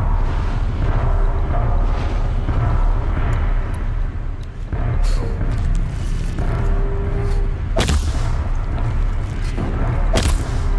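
A deep, steady rumble plays throughout.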